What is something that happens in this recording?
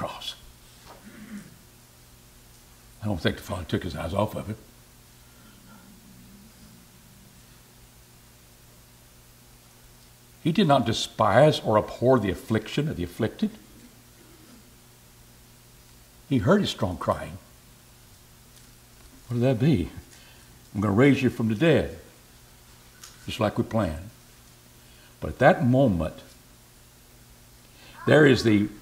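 An elderly man speaks with emphasis into a microphone, pausing often.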